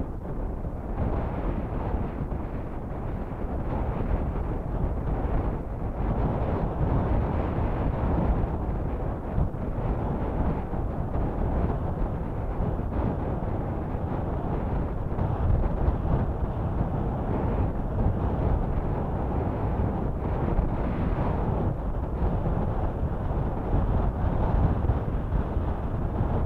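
Water laps and splashes against rocks nearby.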